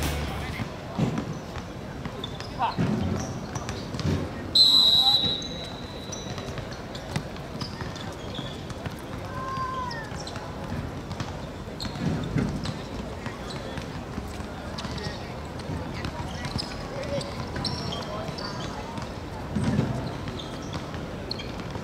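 Players call out to each other across an outdoor court.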